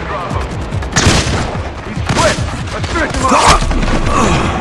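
Loud gunshots crack in quick bursts.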